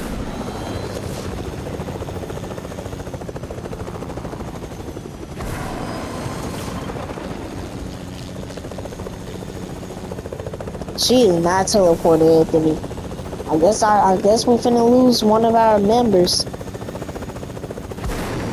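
A helicopter's rotor whirs in a steady drone.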